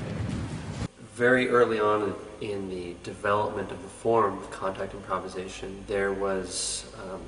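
A man speaks calmly and thoughtfully, close by.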